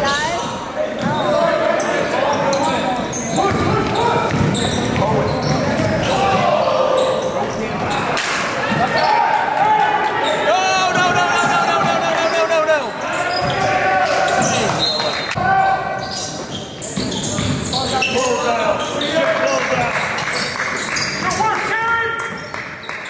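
Young men shout to each other across an echoing gym.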